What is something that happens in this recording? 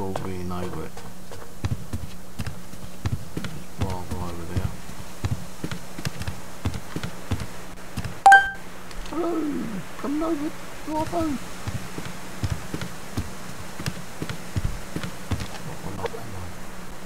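Footsteps thud steadily on a wooden walkway.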